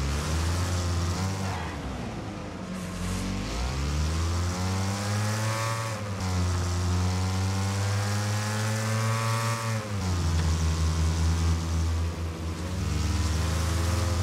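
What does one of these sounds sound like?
Tyres skid and crunch on loose dirt.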